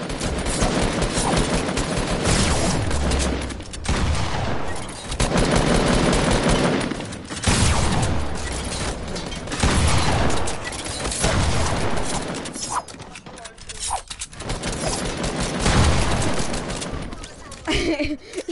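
Game building pieces clatter and crash in rapid bursts.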